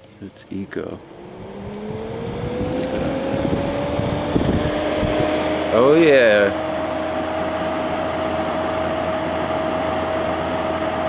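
A fan motor starts up and hums steadily, rising in pitch.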